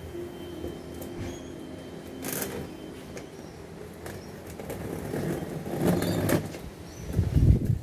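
Cardboard flaps rustle and scrape as a box is opened by hand.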